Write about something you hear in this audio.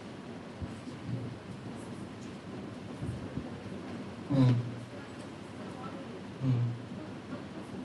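A man speaks through a microphone, in short phrases with pauses, in a room that echoes.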